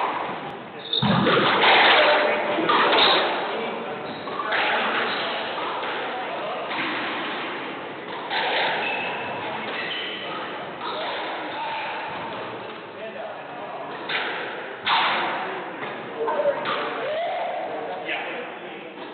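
A squash ball smacks hard against the walls and rackets, echoing around a hard-walled room.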